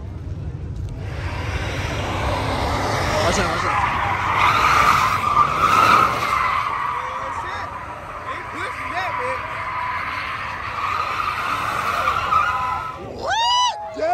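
An engine roars and revs.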